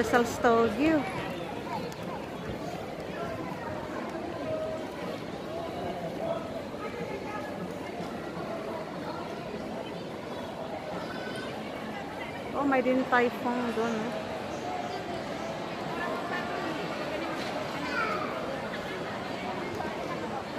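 A crowd of people chatters in the background of a large roofed space.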